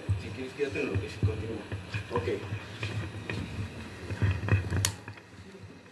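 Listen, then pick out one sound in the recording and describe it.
Several men talk loudly and agitatedly nearby.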